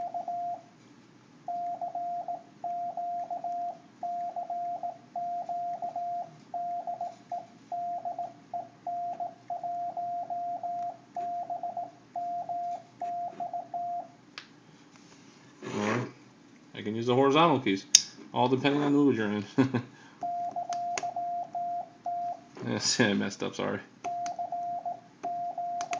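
A high electronic tone beeps out in short and long bursts.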